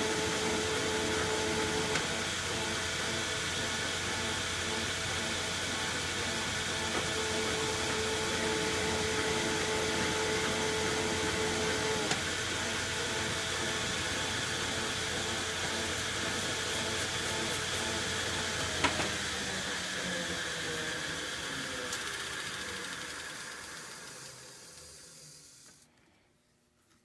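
A lathe hums and whirs steadily.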